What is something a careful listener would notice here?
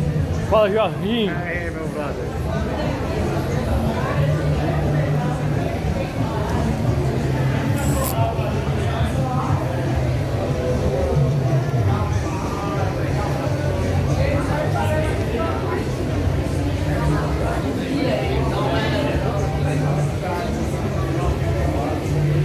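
A crowd murmurs and chatters throughout an echoing hall.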